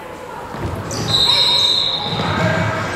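A referee's whistle blows sharply in an echoing gym.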